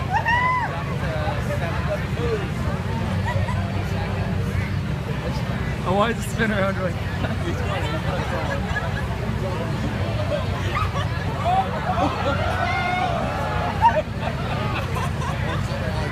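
A mechanical ride's motor hums and whirs steadily.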